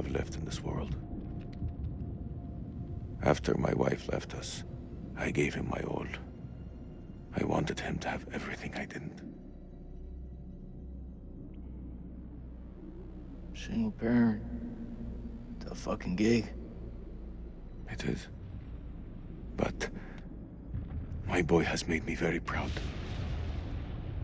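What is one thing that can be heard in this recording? A young man speaks quietly and sadly, close by.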